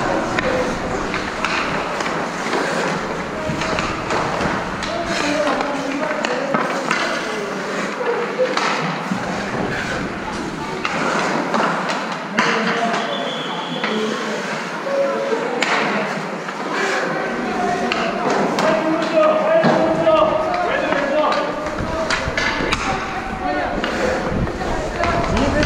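Hockey sticks clack against pucks and the ice.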